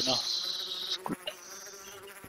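A wooden block is set down with a dull knock.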